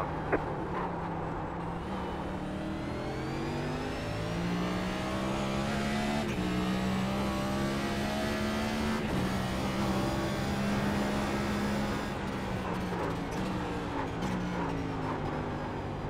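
A race car engine roars, rising in pitch as it speeds up and dropping as it shifts gears.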